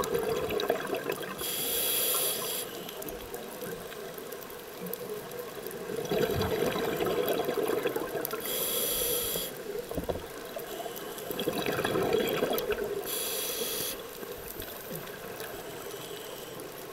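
Scuba bubbles burst out and gurgle underwater every few seconds.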